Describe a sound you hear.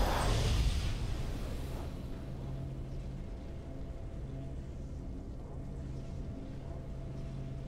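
A victory tune plays softly.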